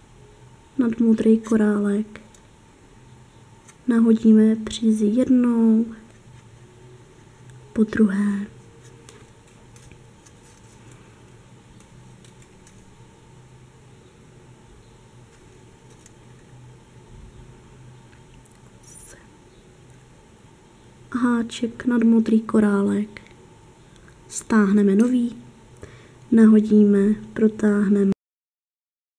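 Small glass beads click softly against a metal crochet hook.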